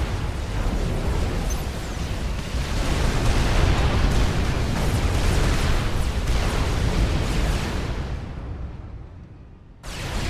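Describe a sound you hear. Explosions rumble and boom in a battle, then fade away.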